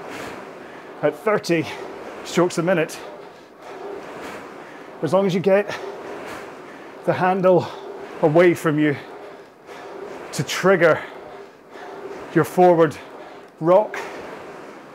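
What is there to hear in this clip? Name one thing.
A man speaks with energy, close to a microphone.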